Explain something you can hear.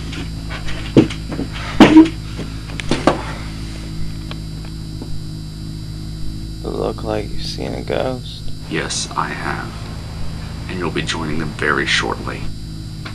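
A young man speaks close up, in a low, urgent voice.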